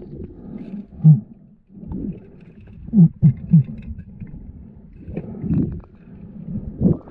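Air bubbles burble and gurgle underwater, muffled and close.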